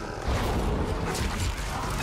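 Footsteps thud on wooden boards.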